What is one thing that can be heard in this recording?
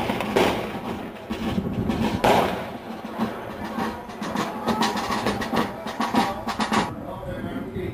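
Gunshots crack repeatedly and echo off stone walls.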